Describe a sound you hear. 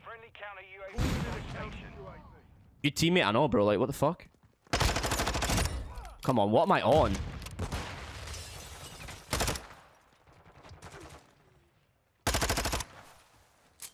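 An automatic rifle fires bursts in a video game.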